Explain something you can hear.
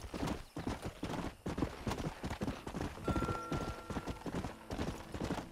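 A horse gallops with quick, heavy hoofbeats on a dirt track.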